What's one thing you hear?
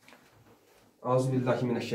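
A man speaks up close.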